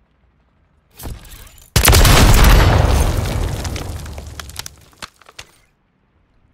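A rifle fires a loud, close burst of shots that rings out and fades.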